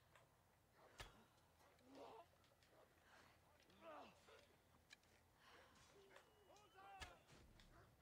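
A bow string twangs as arrows are loosed.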